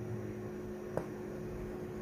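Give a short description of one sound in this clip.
A small button clicks once.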